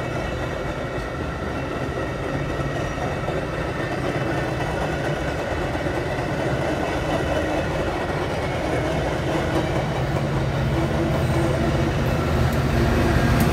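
A train's diesel engine drones steadily nearby.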